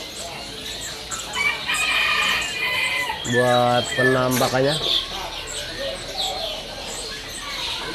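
A small bird chirps and trills rapidly nearby.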